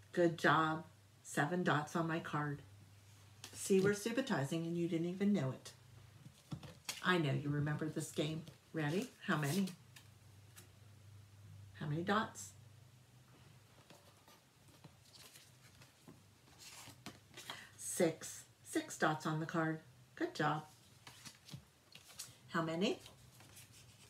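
A middle-aged woman speaks clearly and calmly close by, in short bursts with pauses.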